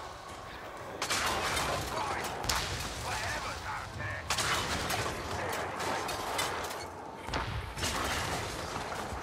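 Fiery explosions boom and crackle.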